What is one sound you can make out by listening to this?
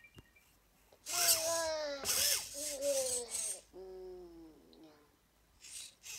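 A small desk robot makes chirpy, cartoon-like voice sounds.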